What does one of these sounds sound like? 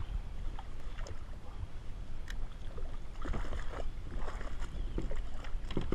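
A hooked fish splashes and thrashes at the water's surface.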